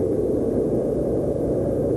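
A man speaks quietly and calmly.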